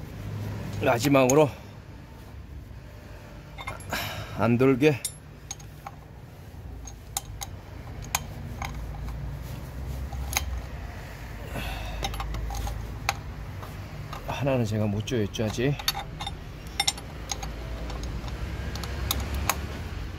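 A ratchet wrench clicks sharply against metal.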